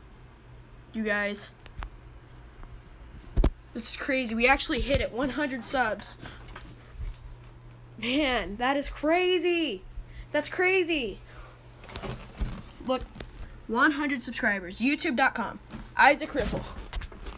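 A boy talks close to a microphone with animation.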